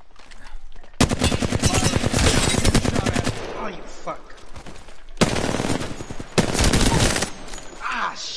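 A rapid-fire gun shoots in fast bursts.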